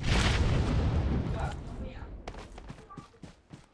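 Footsteps run quickly across hard ground.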